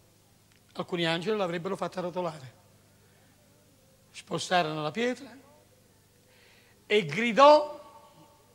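A middle-aged man speaks with animation into a microphone, in short bursts.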